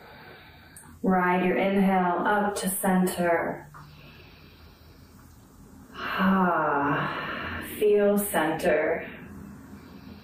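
A woman speaks calmly and clearly, close to the microphone.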